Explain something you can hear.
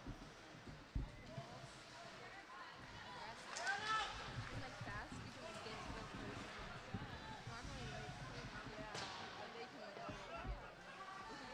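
A hockey stick smacks a puck.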